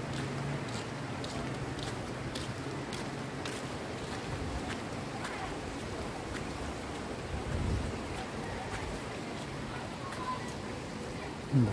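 Footsteps fall on a concrete walkway.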